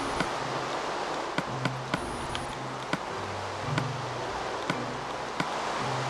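Soft menu clicks tick in quick succession.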